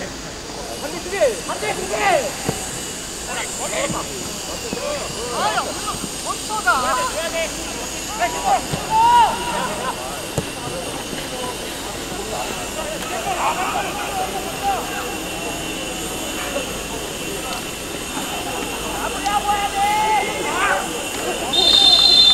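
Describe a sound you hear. Young players shout and call out to each other outdoors across an open field.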